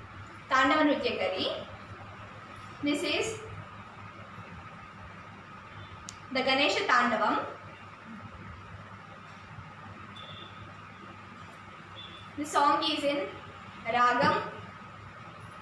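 A young girl speaks clearly in short phrases, close by.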